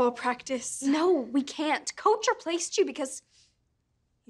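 A teenage girl speaks with animation, close by.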